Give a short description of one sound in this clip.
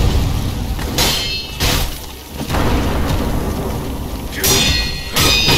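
An explosion booms with a deep roar.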